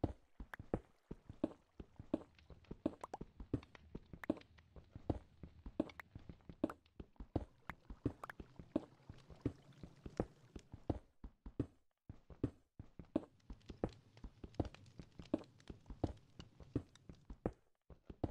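A pickaxe chips rapidly at stone, with sharp repeated clicks.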